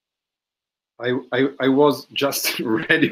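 A second middle-aged man speaks with animation over an online call.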